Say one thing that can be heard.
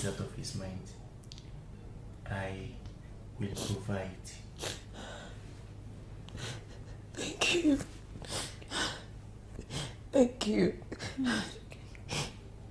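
A woman sobs close by.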